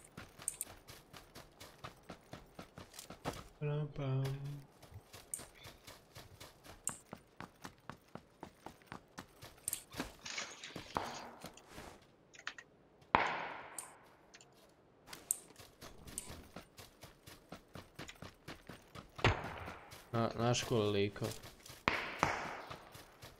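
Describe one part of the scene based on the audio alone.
Quick footsteps run over grass and dirt.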